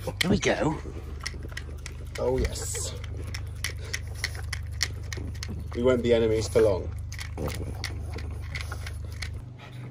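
A dog laps and licks at a bowl up close.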